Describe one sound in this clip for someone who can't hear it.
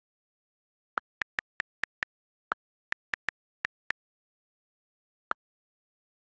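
Phone keyboard clicks tap in quick succession.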